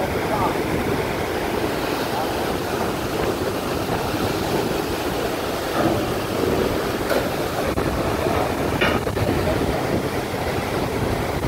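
A crane engine rumbles steadily close by.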